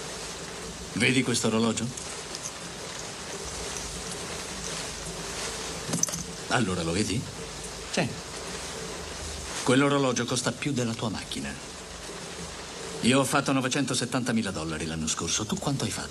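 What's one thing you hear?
A man speaks forcefully.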